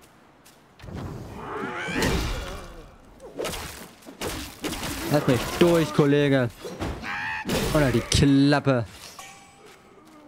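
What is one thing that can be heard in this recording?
Heavy blows thud and clash in a fierce fight.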